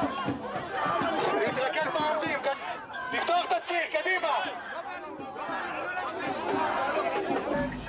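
Men and women argue and shout close by.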